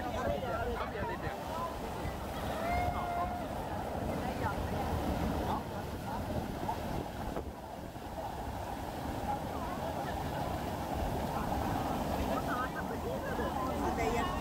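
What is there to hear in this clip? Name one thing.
Young people shout and laugh over the rushing water.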